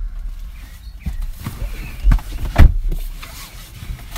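A car door thuds shut nearby.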